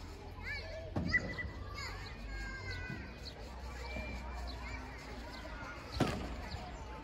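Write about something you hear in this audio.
A padel ball is struck hard with a racket outdoors.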